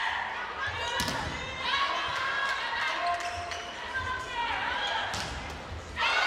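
A volleyball is struck by hand.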